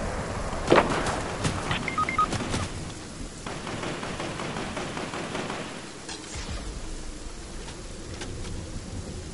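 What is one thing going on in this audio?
Sharp game sound effects crack and thud in quick bursts.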